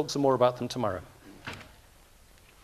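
An elderly man speaks through a microphone in an echoing hall.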